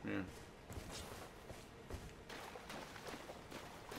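Water splashes under running footsteps.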